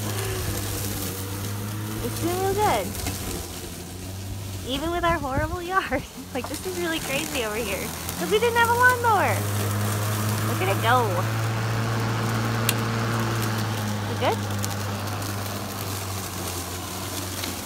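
A lawn mower's blades cut through tall grass.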